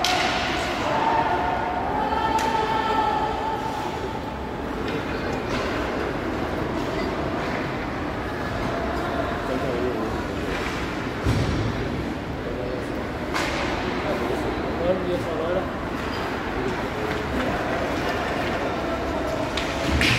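Skates scrape and hiss across the ice.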